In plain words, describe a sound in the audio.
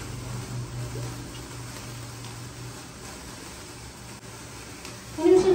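Sparklers fizz and crackle softly.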